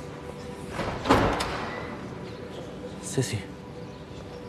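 A long gown rustles softly as a woman walks.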